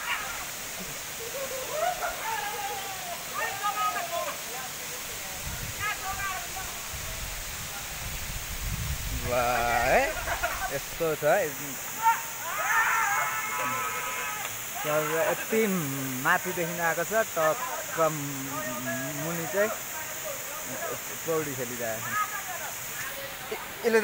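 Men shout and call out with animation.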